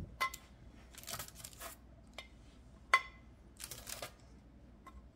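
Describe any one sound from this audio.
Baking paper rustles and crinkles.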